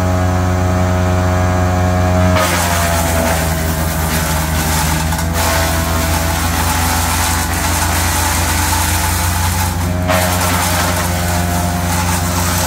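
A wood chipper engine runs loudly and steadily.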